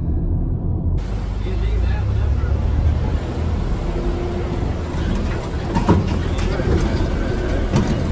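An open-air tram rumbles along outdoors.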